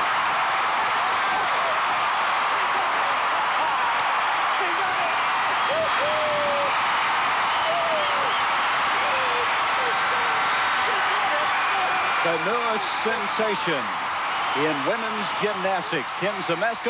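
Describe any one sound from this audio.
A large crowd cheers and roars loudly in a big echoing arena.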